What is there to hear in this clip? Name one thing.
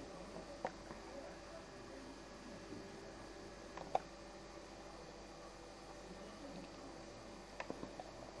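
A puppy breathes softly in its sleep.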